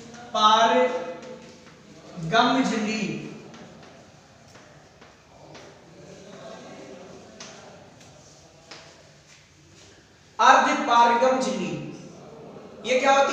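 A man speaks clearly in a room with some echo.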